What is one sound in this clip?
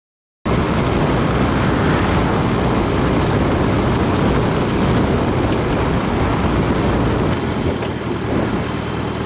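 Strong wind buffets and roars past a fast-moving motorcycle, easing slightly near the end.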